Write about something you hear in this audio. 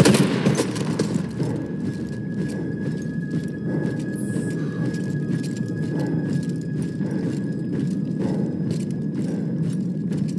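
Footsteps crunch on stony ground at a steady walking pace.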